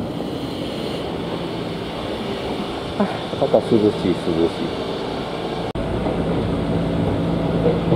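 A train rumbles and rattles along the tracks, heard from inside a carriage.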